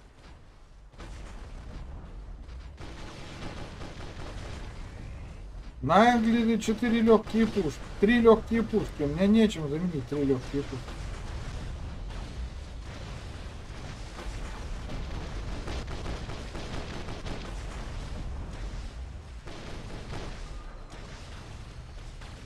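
Gunfire and laser blasts crackle steadily in a game.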